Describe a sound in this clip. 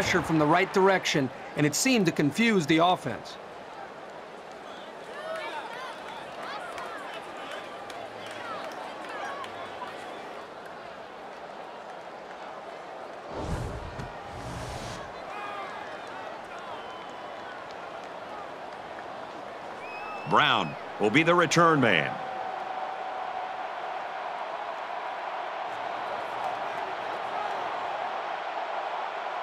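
A stadium crowd murmurs and cheers in the background.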